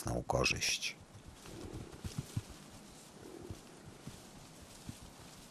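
Hooves thud and grass rustles as bison push through it.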